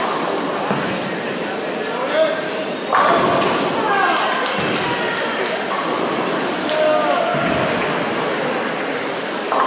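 A crowd of people chatters and cheers in a large echoing hall.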